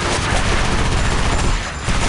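Two guns fire in rapid bursts.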